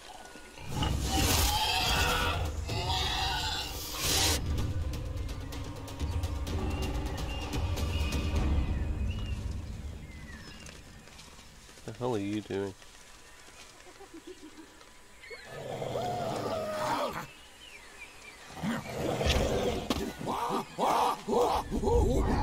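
A wild animal snarls and growls in a fight.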